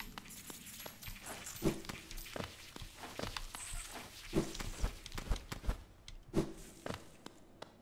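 Video game sound effects thump and swish in quick bursts.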